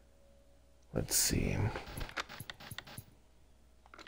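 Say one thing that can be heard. Television static hisses and crackles.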